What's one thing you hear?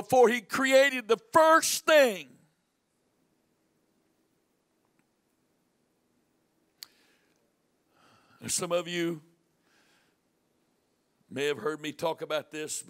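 A middle-aged man speaks with animation through a microphone, pausing between phrases.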